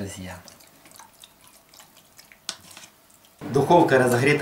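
Raw poultry squelches softly as hands rub and turn it.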